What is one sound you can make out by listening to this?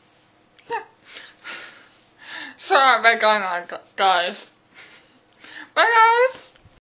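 A young woman talks close to the microphone in a lively, chatty way.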